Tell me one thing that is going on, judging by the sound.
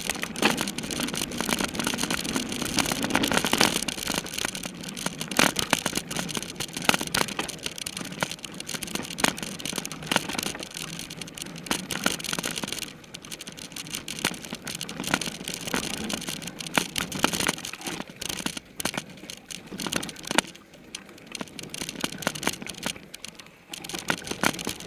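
Bicycle tyres rattle and crunch over a bumpy dirt trail.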